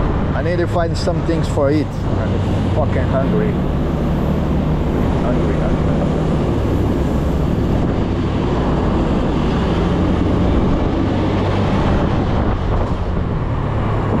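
A scooter engine hums steadily while riding.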